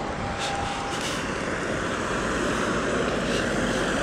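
A car drives past slowly.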